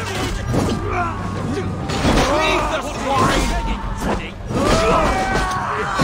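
Swords and shields clash in a fierce fight.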